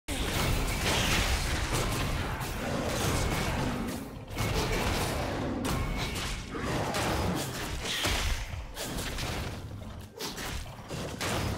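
Blows and hits thud repeatedly.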